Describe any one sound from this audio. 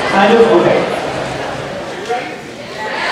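A man speaks into a microphone in a large hall.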